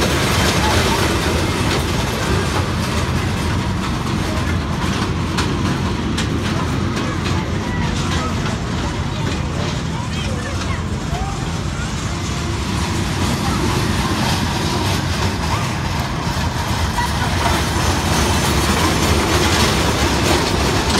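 Ride cars rumble and clatter along a track close by.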